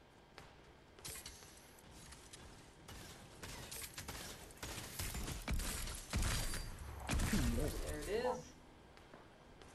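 Sharp gunshots and thuds from a video game crack in quick bursts.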